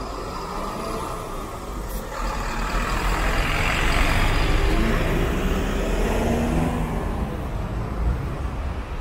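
A bus engine rumbles loudly close by as the bus pulls past.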